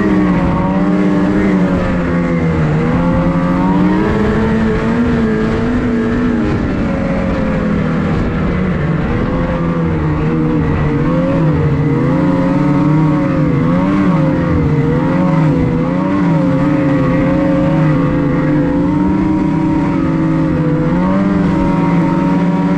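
A snowmobile engine drones loudly close by, its pitch rising and falling as it speeds up and slows.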